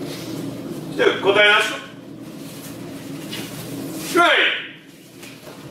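A man lets out sharp, loud shouts nearby.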